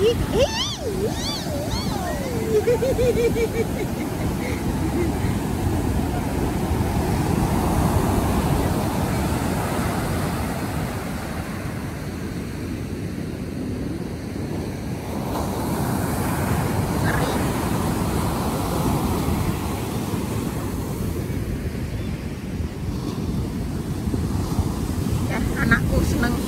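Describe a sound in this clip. Young girls call out and laugh nearby.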